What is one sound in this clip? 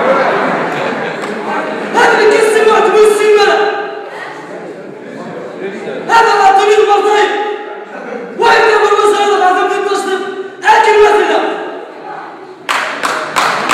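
A man sings long, loud notes through a loudspeaker in a large echoing hall.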